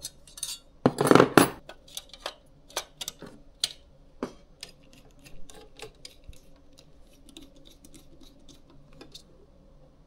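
Metal parts clink and tap against each other.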